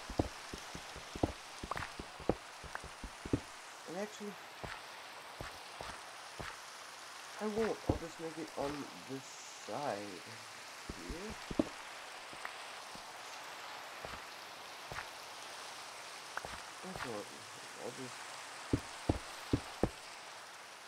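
Blocks crack with short knocks as they are dug.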